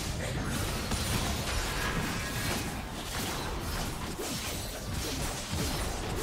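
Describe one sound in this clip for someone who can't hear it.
Weapons clash and thud repeatedly.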